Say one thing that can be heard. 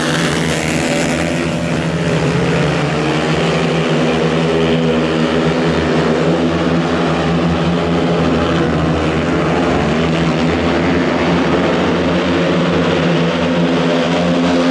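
Motorcycle engines roar and whine loudly.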